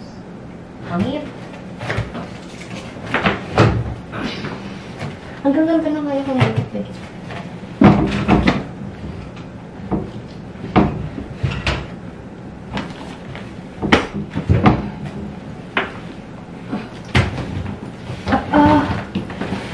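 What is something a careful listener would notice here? A suitcase bumps and knocks as it is lifted and shoved.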